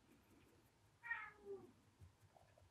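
A kitten gives a short high meow.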